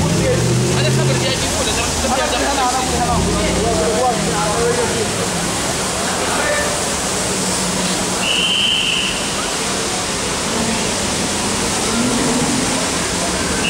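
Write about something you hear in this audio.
Car engines idle and rumble nearby.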